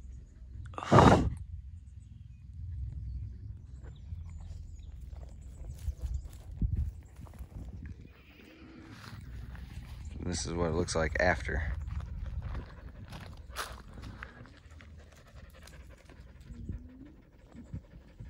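Tall grass rustles in the breeze.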